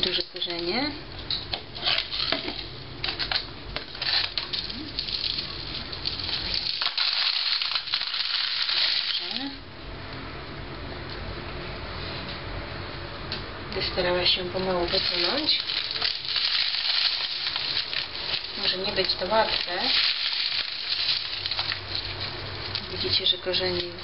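A plastic plant pot rustles and knocks as hands handle it.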